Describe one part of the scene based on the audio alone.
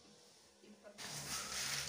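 Liquid pours into a metal pot.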